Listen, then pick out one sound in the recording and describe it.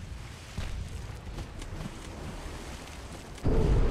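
Shells explode on the water with dull booms.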